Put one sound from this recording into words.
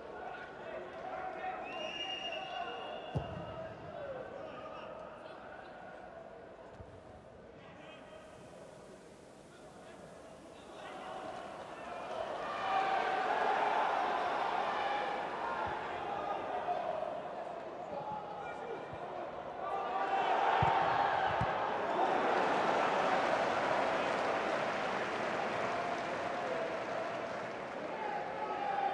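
A large stadium crowd cheers and roars, swelling loudly at times.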